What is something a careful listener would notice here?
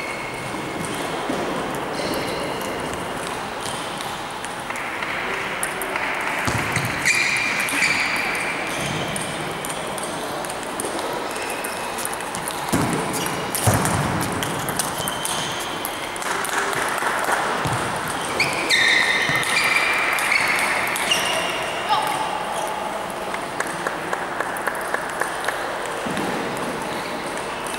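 Sports shoes squeak on the floor.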